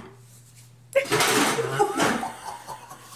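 A man exclaims loudly in surprise.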